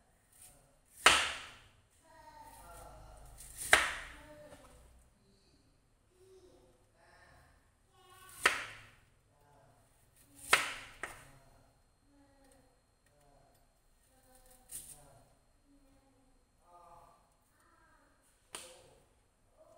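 A knife knocks now and then on a cutting board.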